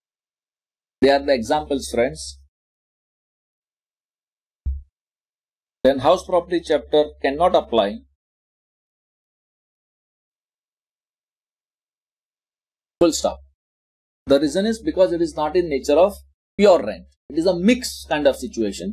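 A man speaks calmly and explains into a close microphone, with pauses.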